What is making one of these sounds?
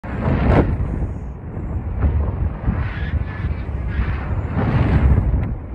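Wind roars and buffets against a microphone.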